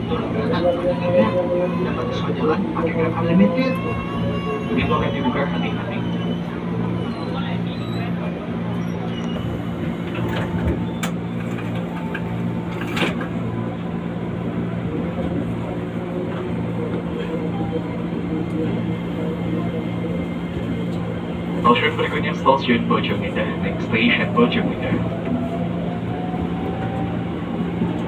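A train hums and rumbles steadily while rolling along the tracks.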